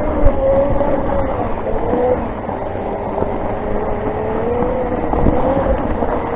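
An electric motor whines steadily as a self-balancing scooter rolls along.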